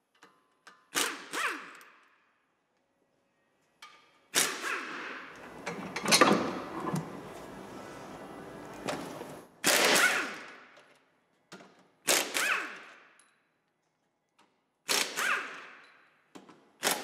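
An impact wrench rattles in short, loud bursts that ring out in an echoing room.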